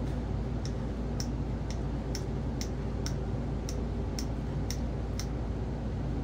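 A screwdriver ratchets with steady clicks.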